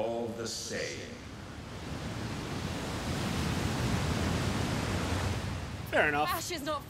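Walls of water roar steadily.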